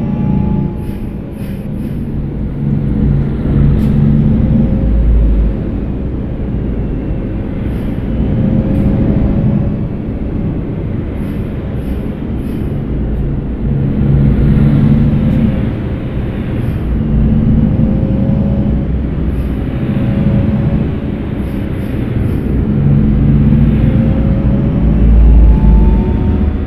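A bus engine drones steadily, rising and falling as it speeds up and slows down.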